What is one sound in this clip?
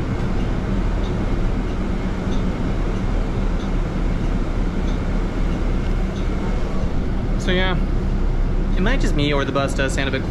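A bus engine rumbles steadily as the bus drives.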